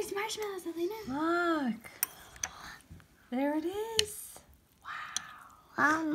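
A spoon scrapes and clinks against a mug.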